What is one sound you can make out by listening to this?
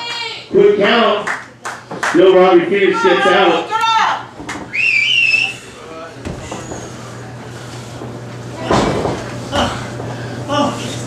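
Men in a crowd shout and cheer loudly nearby.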